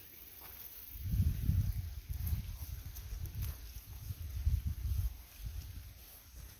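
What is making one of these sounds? Wind rustles through grass and bushes outdoors.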